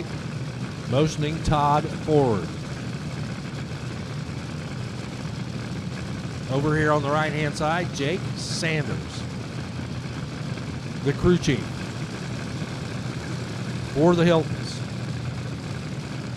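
A race car engine idles with a low, steady rumble.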